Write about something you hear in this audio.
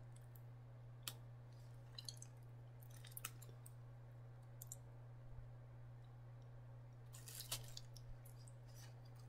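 A plastic fork scrapes and clicks against a foam takeout container.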